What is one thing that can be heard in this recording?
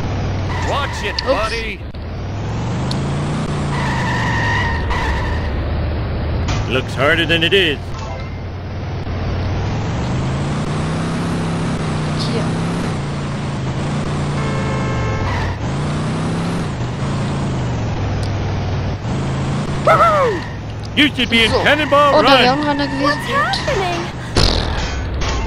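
A car engine revs up and down as the car drives.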